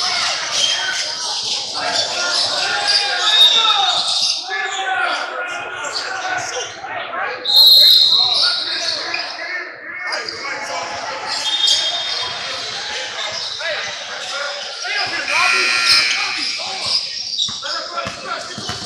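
A crowd of young people chatters and calls out in a large echoing gym.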